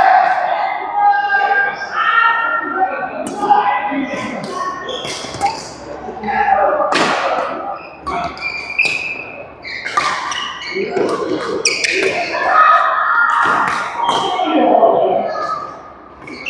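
Men talk and call out during play.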